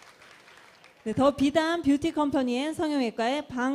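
A woman speaks animatedly through a microphone and loudspeakers in a large echoing hall.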